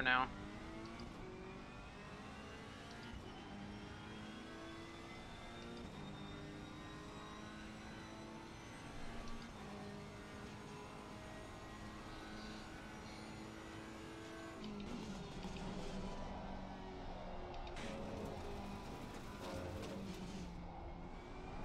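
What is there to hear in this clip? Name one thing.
A racing car engine roars steadily, rising in pitch and dropping as gears change.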